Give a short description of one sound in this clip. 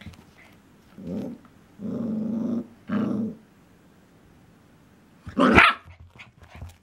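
A small dog barks and growls in short bursts close by.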